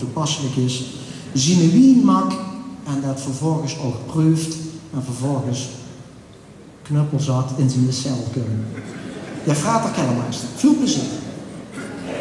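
An elderly man speaks animatedly into a microphone in a large echoing hall.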